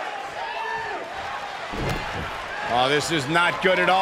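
A body slams down hard onto a wrestling mat with a heavy thud.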